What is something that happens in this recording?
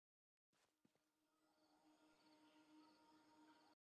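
Footsteps tap lightly on hard steps.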